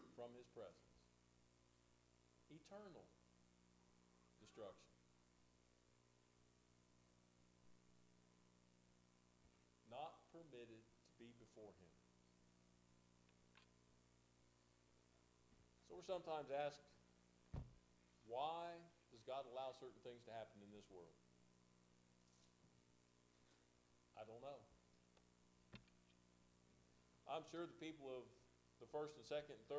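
An elderly man speaks slowly through a microphone in an echoing room, with long pauses.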